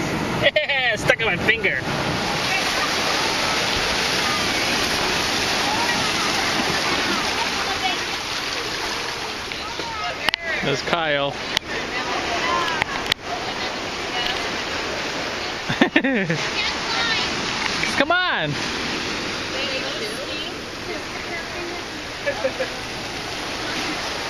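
Waves wash and splash over rocks close by.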